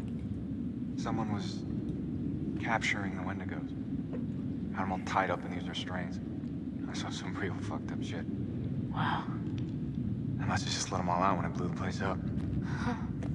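A young man speaks calmly in a low voice.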